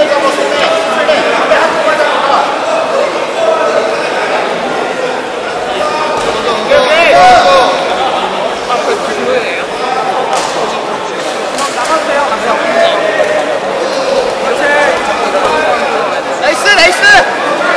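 A crowd of people chatters throughout a large echoing hall.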